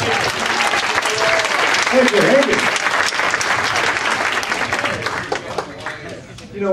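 An audience applauds loudly in a room.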